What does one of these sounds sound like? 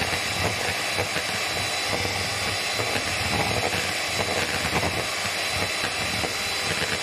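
An electric hand mixer whirs as it beats batter in a plastic bowl.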